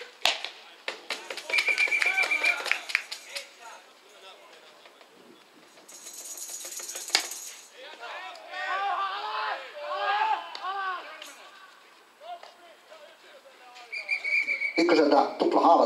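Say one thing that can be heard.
Players shout and call out across an open outdoor field.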